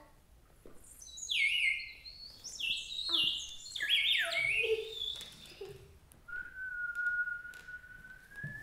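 A woman blows a small whistle, making bright warbling, chirping calls.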